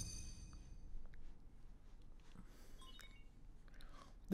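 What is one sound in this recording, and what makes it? A soft electronic chime sounds as a device activates.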